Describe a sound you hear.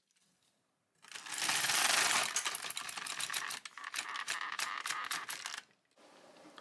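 A knitting machine carriage slides along its bed with a rattling whir.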